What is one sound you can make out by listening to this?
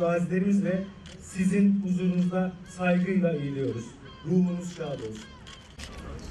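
A man speaks formally into a microphone over a loudspeaker, outdoors.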